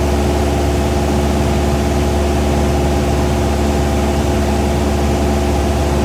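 A small plane's propeller engine drones loudly and steadily from close by.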